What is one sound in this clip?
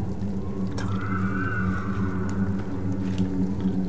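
Light footsteps patter on a wooden floor.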